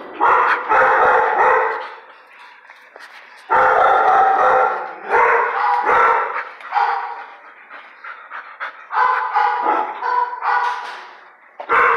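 A dog barks and whines loudly close by, echoing off hard walls.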